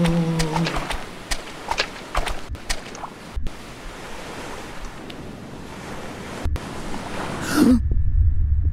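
Water splashes and laps.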